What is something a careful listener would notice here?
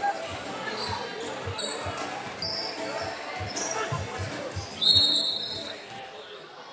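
A basketball bounces on a wooden court with thuds that echo in a large hall.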